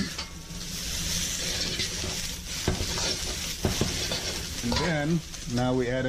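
Metal tongs clack and scrape against a pan.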